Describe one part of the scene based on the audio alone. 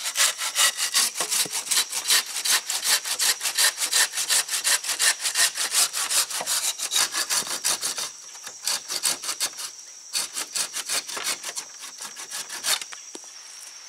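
A hand saw rasps quickly back and forth through wood.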